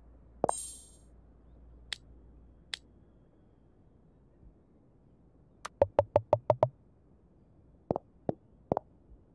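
Short electronic chimes and pops play as game pieces are merged.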